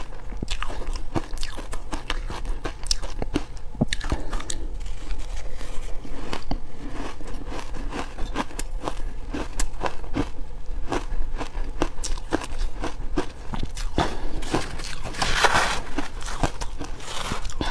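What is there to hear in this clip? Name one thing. A spoon scrapes and crunches through shaved ice.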